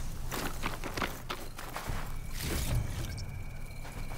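Metal parts clank and rattle as a wrecked machine is searched.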